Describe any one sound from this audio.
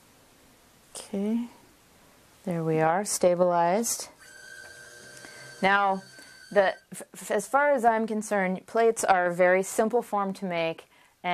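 A woman speaks calmly and clearly to a listener nearby.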